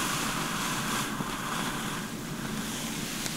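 Hands rub gently over hair.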